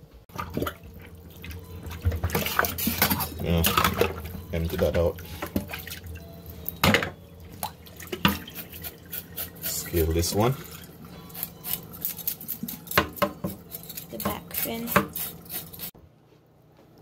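A knife scrapes scales off a fish with quick rasping strokes.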